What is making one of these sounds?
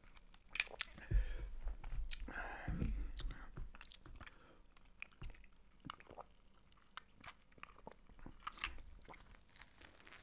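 A man chews and slurps food close to a microphone.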